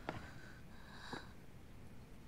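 A young woman sniffles quietly while crying.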